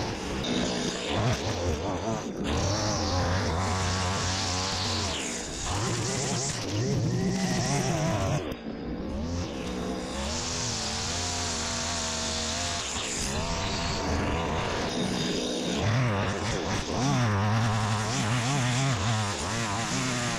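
A petrol string trimmer engine whines loudly.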